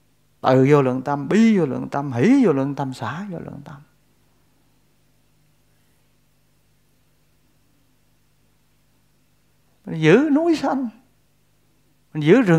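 A man speaks calmly and steadily, close by, with pauses.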